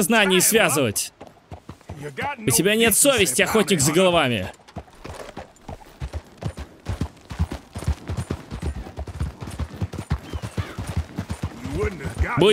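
A horse's hooves clop steadily on a stony trail.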